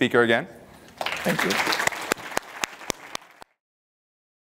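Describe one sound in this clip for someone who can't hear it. An audience applauds and then the clapping thins out.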